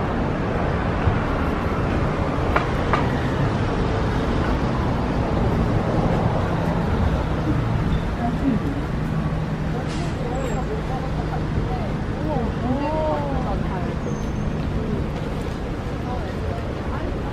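Traffic rumbles steadily along a nearby street.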